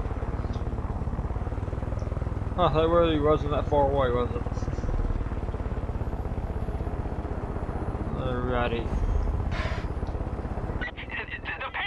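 A helicopter rotor thumps steadily nearby.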